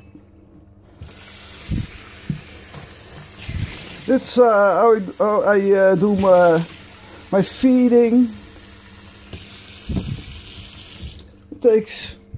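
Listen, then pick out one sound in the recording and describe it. Tap water runs and splashes into a metal sink.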